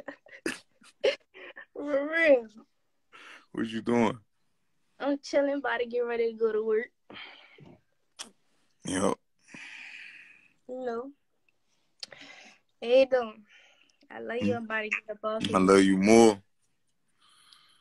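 A young woman giggles over an online call.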